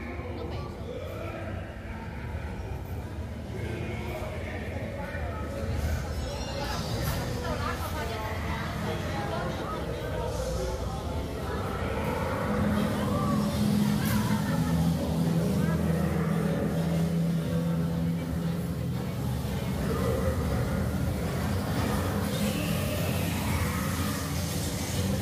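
A ride car rumbles steadily along its track through an echoing tunnel.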